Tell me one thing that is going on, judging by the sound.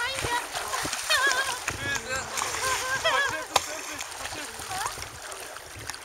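Water splashes as a swimmer kicks with flippers.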